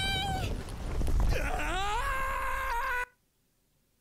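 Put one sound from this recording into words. A young woman screams long and loud.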